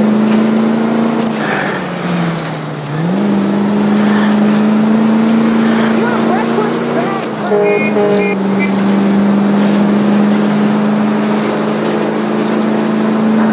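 A car engine hums steadily, dipping briefly in pitch as the car turns and then picking up again.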